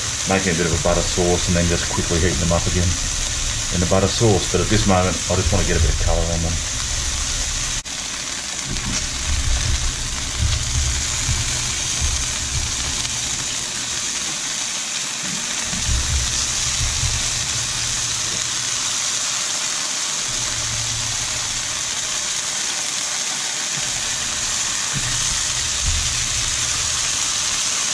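Food sizzles steadily in hot oil in a frying pan.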